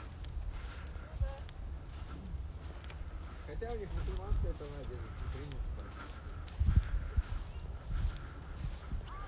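Horse hooves clop slowly on a dirt trail.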